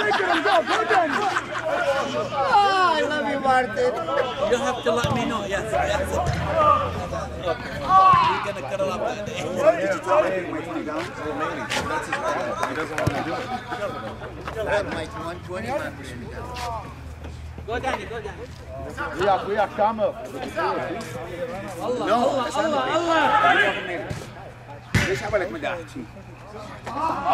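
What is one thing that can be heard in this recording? Men talk and call out loudly nearby, outdoors.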